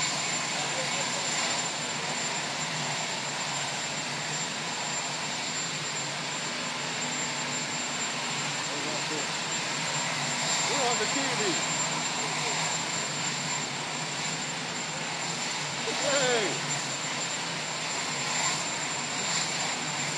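A crowd of men and women murmurs and chats nearby, outdoors.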